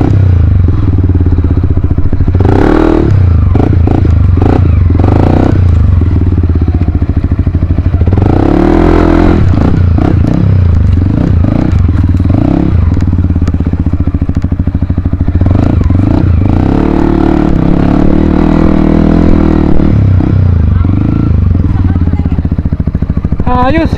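A dirt bike engine putters and revs close by.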